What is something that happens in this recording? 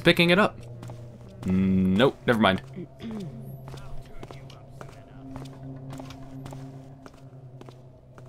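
Footsteps tap on stone pavement.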